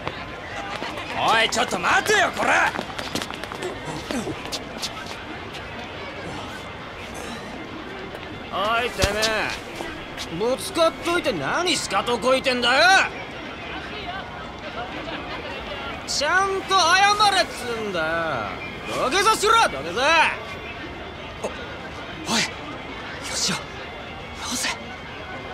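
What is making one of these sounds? A young man calls out sharply.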